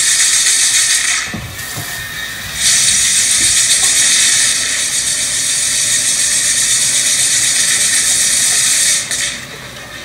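Fireworks hiss and crackle loudly as they spray sparks.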